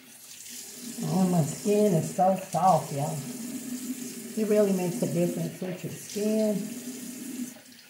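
A woman speaks close by, calmly.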